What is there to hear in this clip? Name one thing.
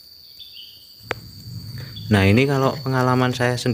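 Bees buzz softly inside a hive.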